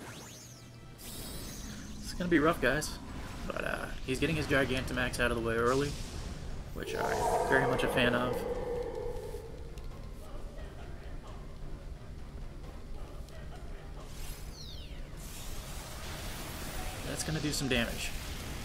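A magical energy burst whooshes and rumbles.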